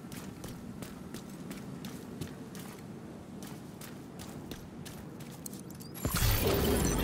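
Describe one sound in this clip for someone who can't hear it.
Footsteps tread quickly on hard ground.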